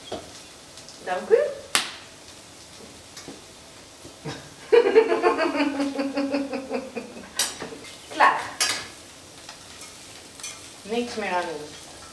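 A woman speaks brightly close by.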